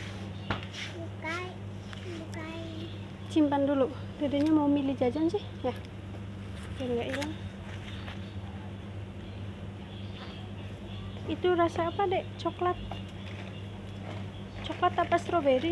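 A little girl talks in a high voice close by.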